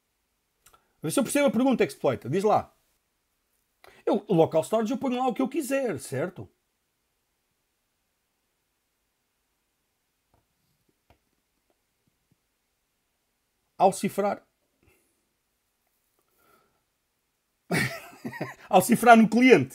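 A man speaks calmly and close to a microphone, with pauses.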